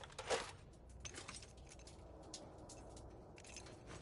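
A metal wrench clinks as it is picked up.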